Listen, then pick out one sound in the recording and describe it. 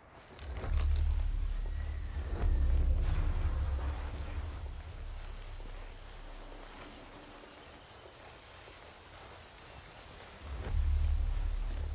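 Footsteps crunch through dry grass and leaves.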